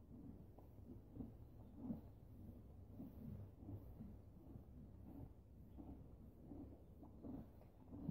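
A horse tears and chews grass close by.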